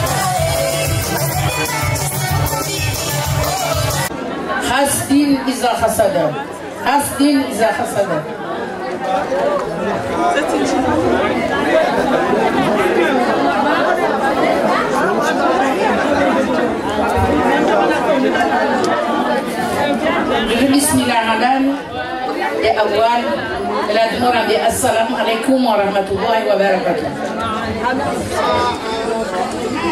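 A crowd of women chatters loudly in an echoing room.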